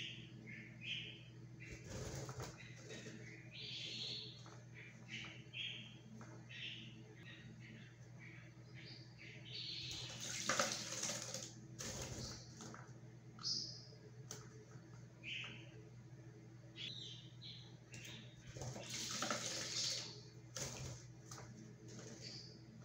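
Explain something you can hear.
A small bird chirps.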